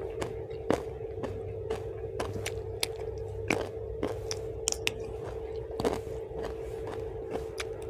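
Fingers squish and rustle through food on a leaf.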